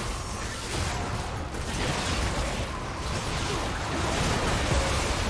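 Game spells and attacks crackle and boom in a busy battle.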